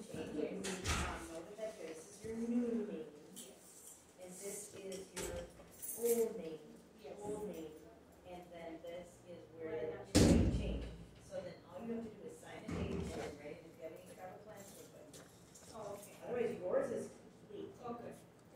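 A middle-aged woman speaks quietly and haltingly close by.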